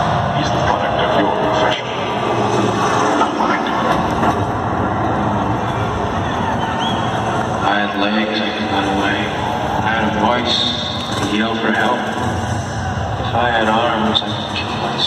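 Loud live music plays over big loudspeakers in a big echoing arena.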